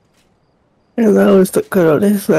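A young woman speaks loudly and with animation close to a microphone.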